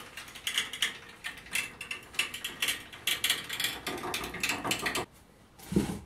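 A chain hoist's chain rattles and clinks as it is pulled.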